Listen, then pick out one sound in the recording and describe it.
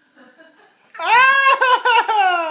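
A toddler squeals and laughs loudly.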